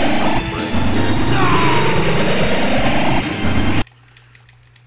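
Loud arcade game explosions and gunfire blast with music.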